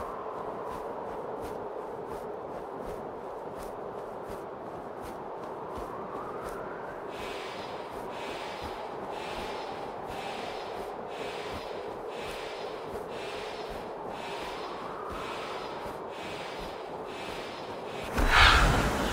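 A bird's wings beat in a steady rhythm.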